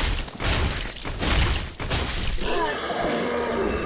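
Heavy sword blows strike and clash in a fight.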